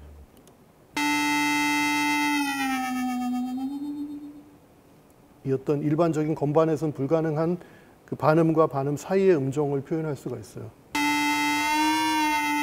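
A synthesizer plays sustained electronic tones that bend in pitch.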